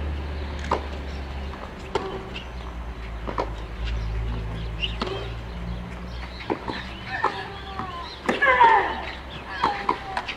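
Tennis rackets strike a ball in a rally.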